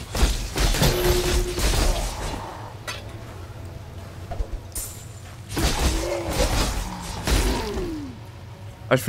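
Game sound effects burst and clash during a fight.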